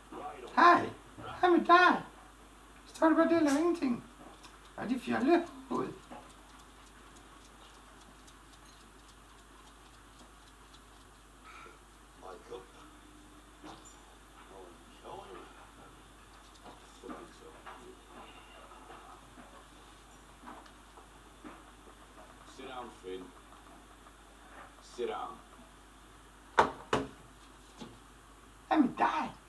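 A television plays quietly in the background.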